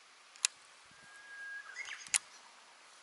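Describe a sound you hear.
A fishing reel whirs briefly as line runs out.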